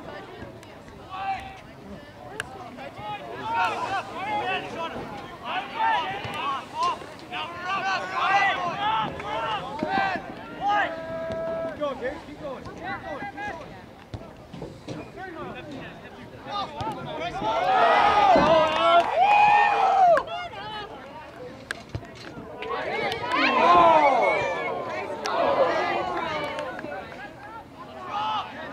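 Spectators close by shout and cheer loudly, with bursts of excitement.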